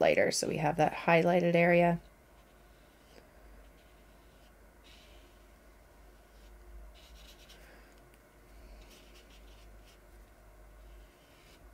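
A paintbrush swishes softly on paper.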